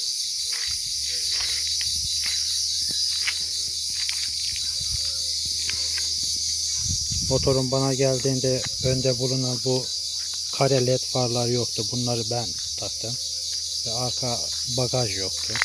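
A quad bike engine idles steadily nearby.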